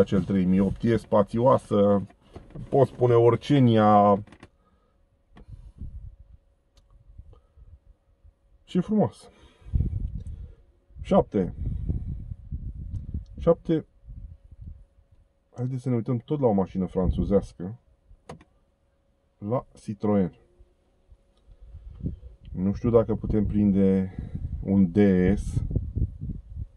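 A middle-aged man talks calmly and close up.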